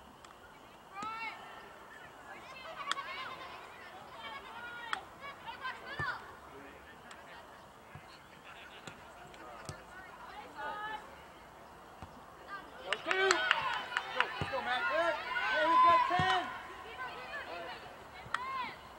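Spectators on the sidelines shout and cheer outdoors.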